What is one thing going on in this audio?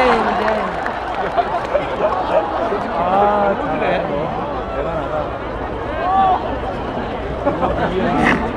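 A crowd of people chatters and calls out all around outdoors.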